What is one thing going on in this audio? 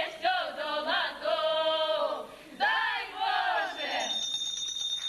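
Women sing together loudly through a microphone in a large hall.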